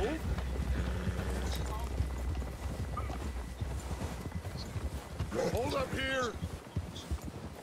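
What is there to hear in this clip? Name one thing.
Horse hooves crunch steadily through deep snow.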